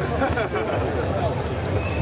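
A man speaks loudly through a megaphone.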